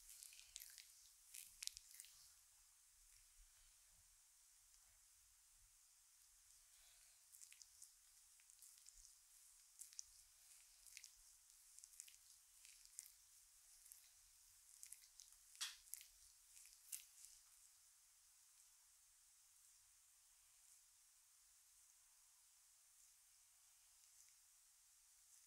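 Hands rub and knead skin with soft, faint brushing sounds.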